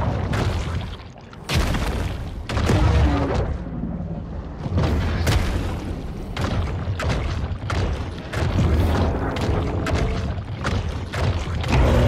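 A shark bites and tears at a whale with heavy crunching thuds.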